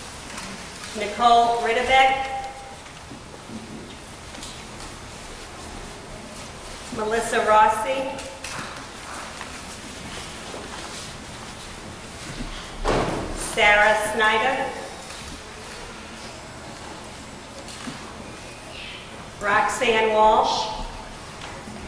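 An elderly man speaks briefly and calmly in a room with a slight echo, in short bursts.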